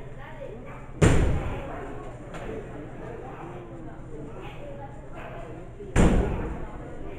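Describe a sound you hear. Bodies slam hard onto a wrestling ring's mat with a booming thud.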